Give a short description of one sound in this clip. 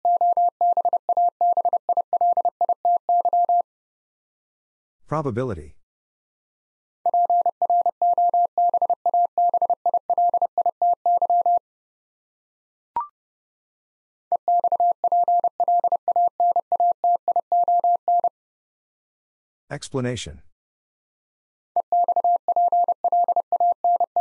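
A Morse code tone beeps in quick, steady bursts of dots and dashes.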